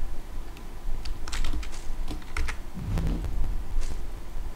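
Short clicks and rustles of a game menu sound as items are picked up.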